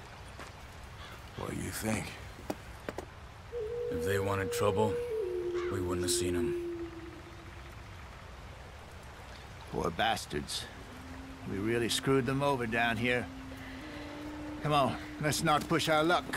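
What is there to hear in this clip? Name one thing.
An older man talks gruffly nearby.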